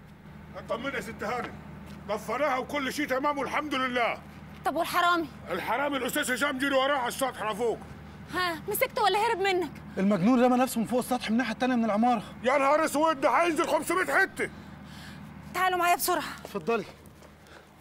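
A middle-aged man talks loudly and with animation nearby.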